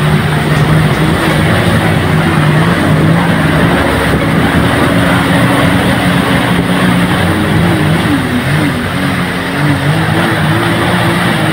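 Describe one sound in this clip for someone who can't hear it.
Water churns and splashes in a boat's wake.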